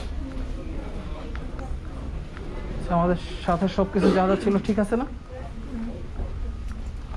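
Footsteps thud softly on a carpeted floor.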